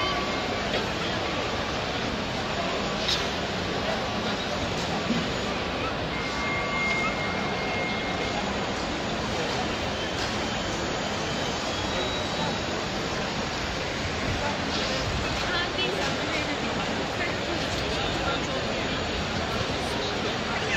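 A large crowd murmurs and shuffles around, outdoors.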